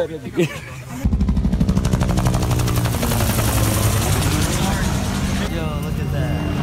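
A helicopter thumps loudly overhead.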